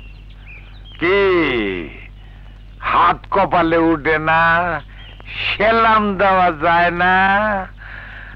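An elderly man speaks with feeling, close by.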